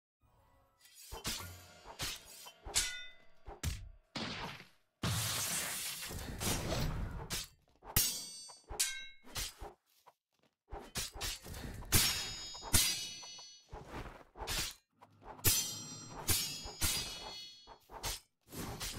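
Swords swish and clang in quick strikes.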